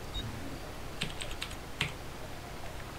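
Soft clicks sound as menu items are chosen.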